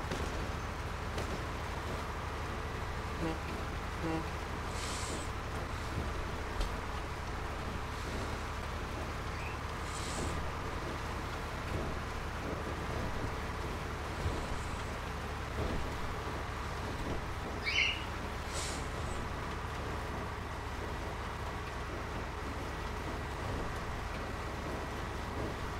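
Tyres crunch over gravel and bumps.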